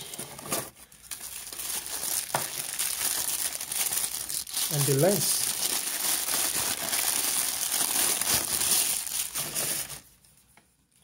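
A plastic bag crinkles and rustles loudly.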